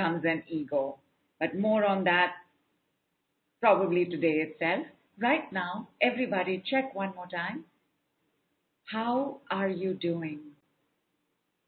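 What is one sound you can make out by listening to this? A woman speaks calmly and closely into a microphone.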